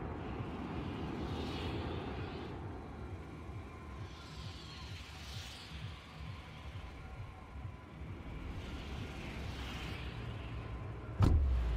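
Wind rushes past in slow gusts.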